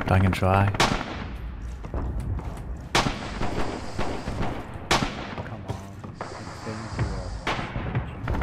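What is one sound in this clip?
Rifle shots crack loudly, one every two seconds or so.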